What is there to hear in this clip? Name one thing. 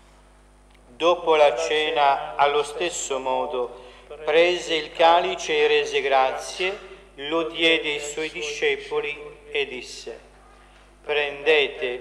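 A man speaks steadily through a microphone in an echoing hall.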